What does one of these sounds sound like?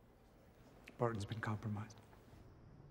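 A man speaks calmly on a phone.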